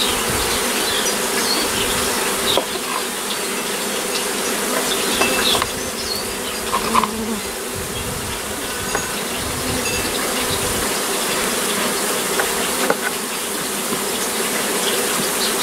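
A knife scrapes and cuts through honeycomb.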